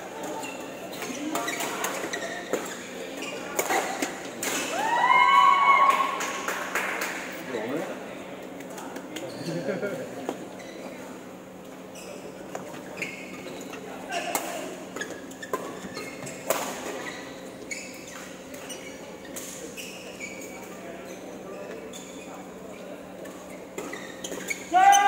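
Badminton rackets strike a shuttlecock with sharp pops in an echoing hall.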